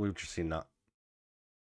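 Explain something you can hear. A man speaks briefly into a headset microphone.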